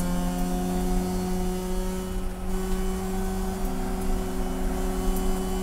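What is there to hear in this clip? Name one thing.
A racing car's engine roars loudly from inside the cabin, holding a steady high pitch.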